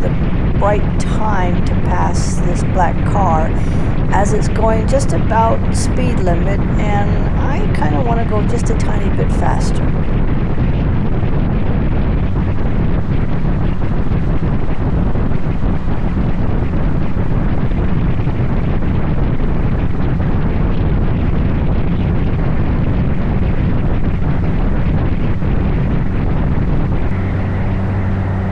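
Wind roars and buffets steadily past a moving motorcycle.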